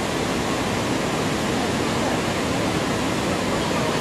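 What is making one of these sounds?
A net splashes into the water.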